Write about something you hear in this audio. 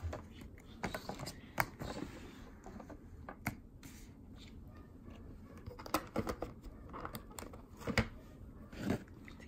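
Plastic packaging taps and clicks against a tray as it is handled.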